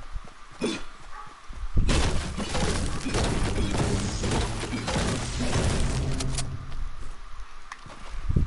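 A pickaxe chops at wood with repeated thuds.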